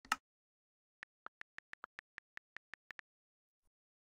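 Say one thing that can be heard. Key clicks tick on a phone's touch keyboard.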